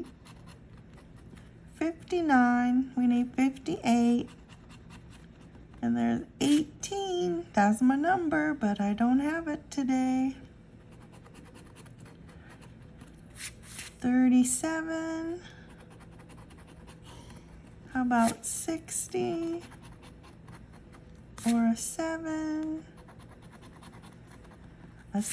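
A coin scratches at a lottery ticket.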